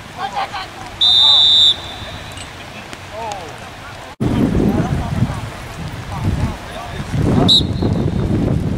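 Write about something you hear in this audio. A referee's whistle blows in sharp blasts.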